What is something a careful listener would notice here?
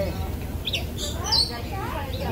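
A child speaks in a high voice nearby.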